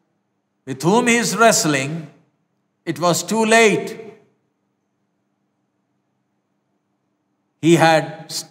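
A middle-aged man speaks calmly and clearly into a close microphone, with pauses.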